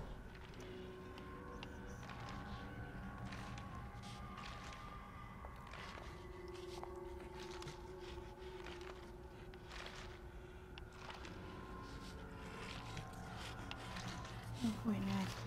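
Footsteps shuffle slowly across a hard floor.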